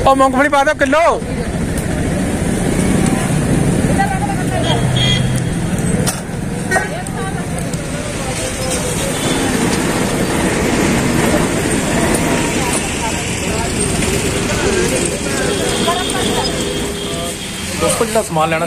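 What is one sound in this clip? Voices chatter in a busy outdoor market.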